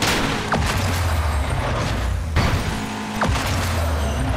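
Metal crashes loudly as cars collide.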